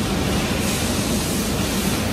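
A pressure washer sprays water onto metal.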